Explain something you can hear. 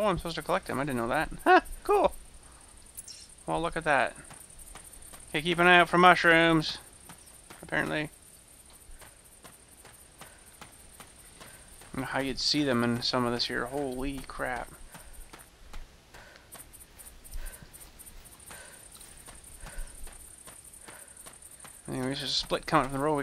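Footsteps tread steadily on a gravel path.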